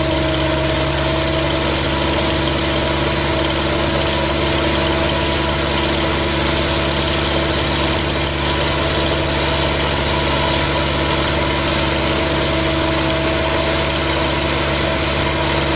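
A drilling rig's diesel engine runs with a loud, steady drone close by.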